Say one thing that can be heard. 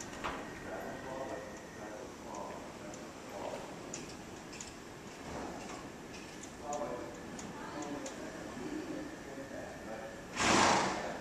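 A man talks calmly at a distance in a large echoing hall.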